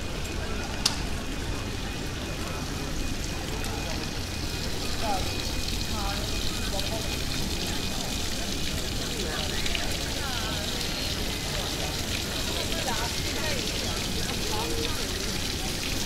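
A crowd of people chatters outdoors in a busy open square.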